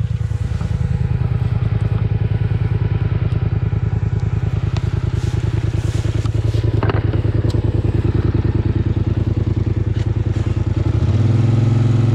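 A quad bike engine idles with a steady, fast chugging.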